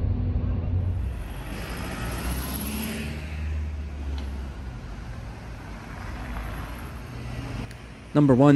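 A double-decker bus drives past on a city street.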